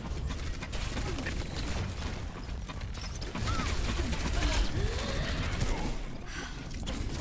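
Explosions and energy blasts roar loudly amid the gunfire.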